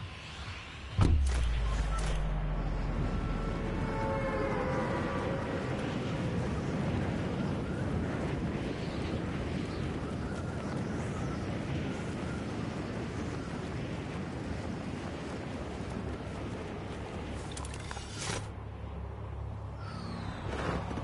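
Wind rushes steadily past a game character skydiving.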